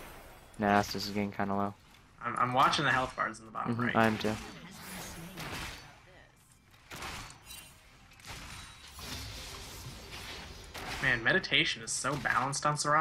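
Fighting sound effects zap and clash in a video game.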